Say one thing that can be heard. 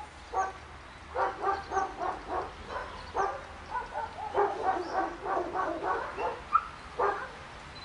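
A man talks loudly outdoors in short bursts.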